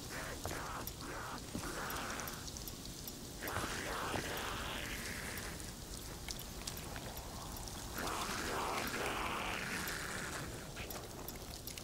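Footsteps crunch steadily over snow and gravel.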